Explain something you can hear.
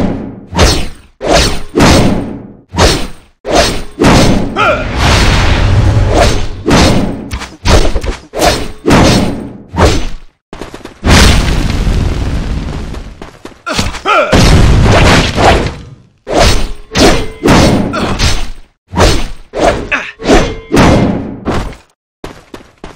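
Swords clash and slash in rapid, repeated hits.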